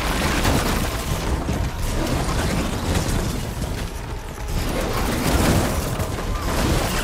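Beasts snarl and thrash as they fight on sand.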